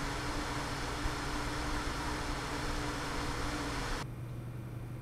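Computer cooling fans whir loudly with a steady hum.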